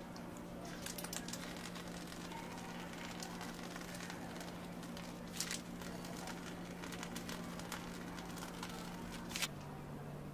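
Whipped cream squirts from a piping bag.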